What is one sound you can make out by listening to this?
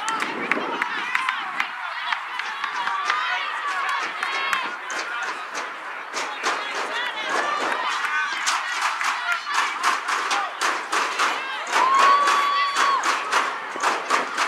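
Adults on the sideline talk and cheer.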